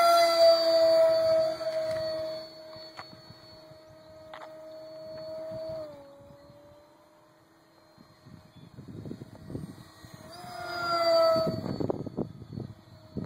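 A small model plane's electric motor whines overhead, rising and falling as it passes.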